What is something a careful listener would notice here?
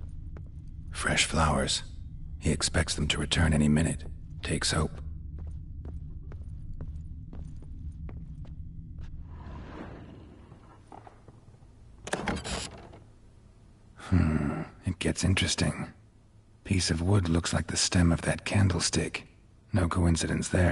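A middle-aged man speaks calmly in a low, gravelly voice.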